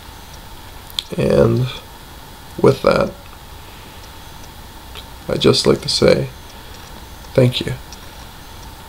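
A young man speaks calmly in short bursts, close to a microphone.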